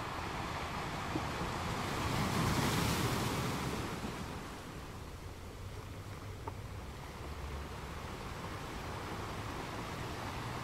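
Foamy water washes and hisses over rocks close by.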